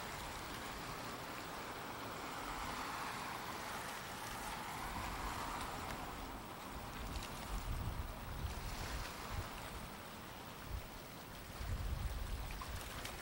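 Water rushes and washes steadily.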